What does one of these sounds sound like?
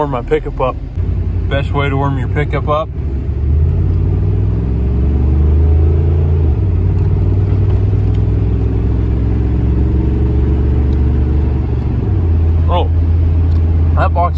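A car engine hums steadily with a low rumble.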